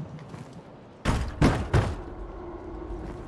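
A wooden door creaks open and bangs.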